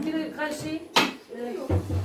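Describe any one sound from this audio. A rolling pin taps on a wooden board.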